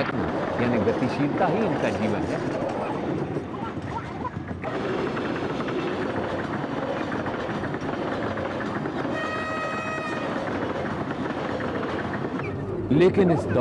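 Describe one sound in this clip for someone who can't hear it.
A train rattles and rumbles along the tracks.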